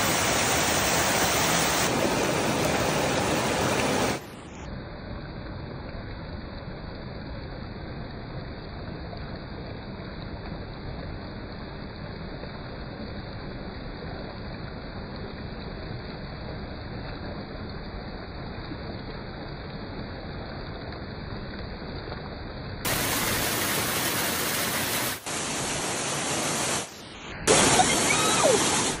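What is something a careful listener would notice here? A waterfall roars onto rocks.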